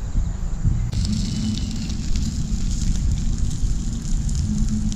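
Embers crackle softly in a small fire.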